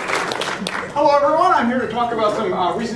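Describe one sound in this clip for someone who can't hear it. A young man speaks in a large echoing hall.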